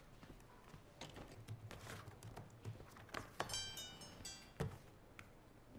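Keys clack as someone types on a keyboard.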